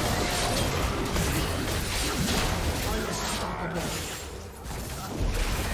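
Game spell effects burst and crackle in rapid bursts.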